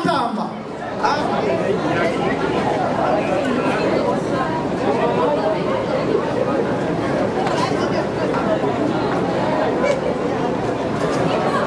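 A crowd of guests chatters and cheers in a large room.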